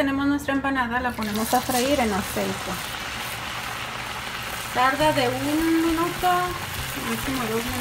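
Hot oil sizzles and bubbles loudly.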